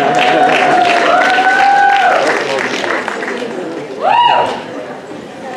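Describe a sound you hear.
Audience members whoop and cheer.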